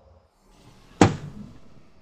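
A loud magical blast bursts suddenly.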